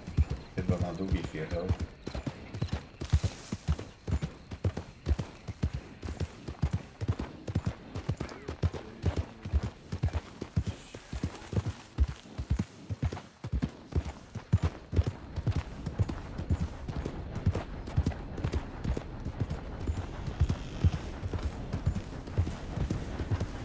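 Horse hooves thud at a steady trot on a dirt trail.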